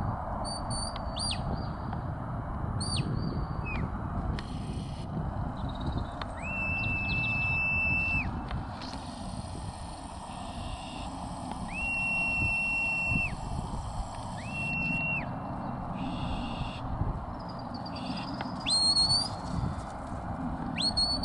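Wind buffets and rumbles outdoors.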